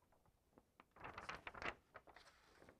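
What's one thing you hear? A sheet of paper rustles as it is laid down.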